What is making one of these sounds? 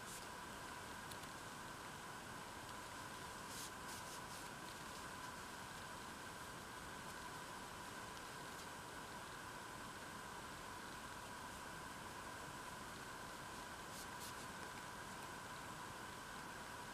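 A crochet hook softly rustles and ticks as yarn is pulled through stitches.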